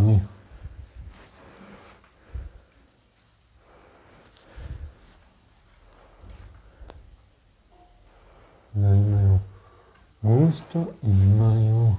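Thin curtain fabric rustles as it is handled.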